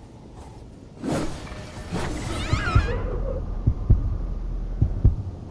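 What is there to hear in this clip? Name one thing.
A heavy blade whooshes through the air and strikes with dull thuds.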